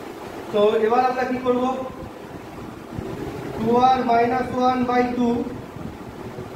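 A man speaks calmly and close by, as if explaining.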